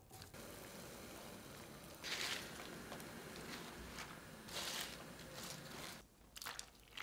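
Water simmers in a pot.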